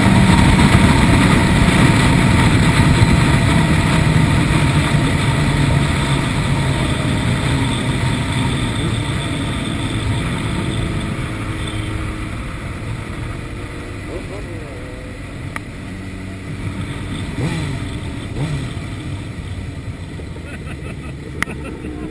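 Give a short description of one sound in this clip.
A motorcycle engine hums steadily and slowly quietens as the bike slows down.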